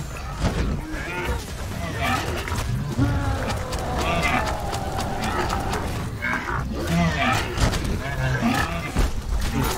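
Blasts and explosions crackle in quick bursts.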